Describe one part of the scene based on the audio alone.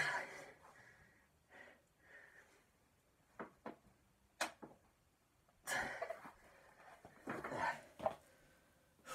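A young man grunts and breathes hard with effort.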